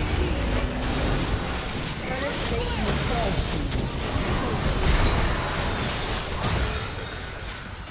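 Game sword hits clash and thud.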